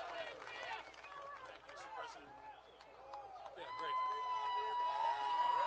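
A large crowd cheers and whistles loudly.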